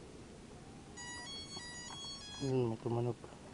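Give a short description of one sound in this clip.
A small drone beeps in quick electronic tones.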